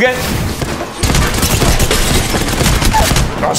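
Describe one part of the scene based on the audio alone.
Rapid gunshots fire in bursts.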